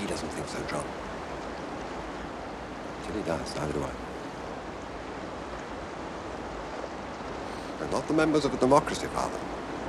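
A river rushes steadily in the background.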